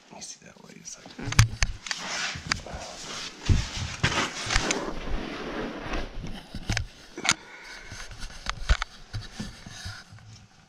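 Handling noises rustle and knock close by.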